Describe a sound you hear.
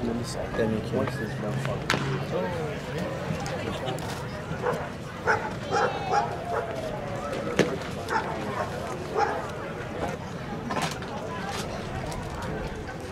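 Spectators chatter nearby in a murmur of voices.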